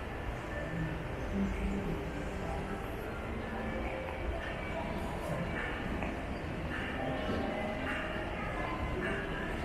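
Voices murmur indistinctly in a large, echoing indoor hall.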